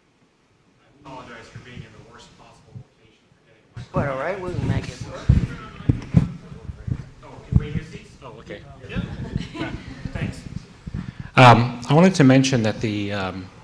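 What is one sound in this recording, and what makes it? A man speaks into a microphone in a room with a slight echo.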